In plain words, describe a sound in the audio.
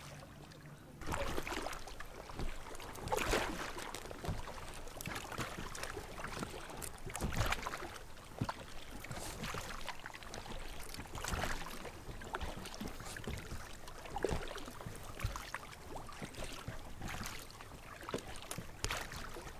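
A paddle splashes and dips in water close by.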